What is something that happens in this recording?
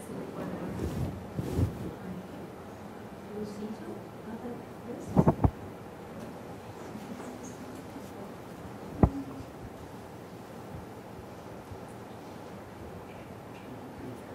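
A woman speaks calmly at a distance.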